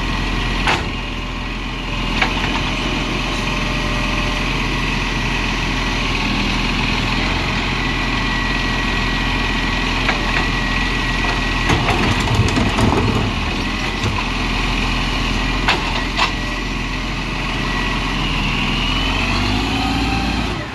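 A garbage truck engine idles with a steady rumble.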